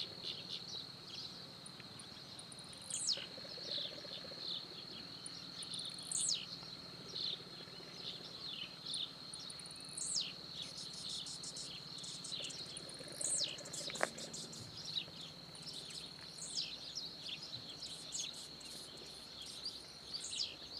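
Birds chirp and whistle nearby outdoors.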